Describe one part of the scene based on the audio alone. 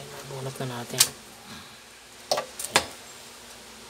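A plastic plug knocks against a hard surface.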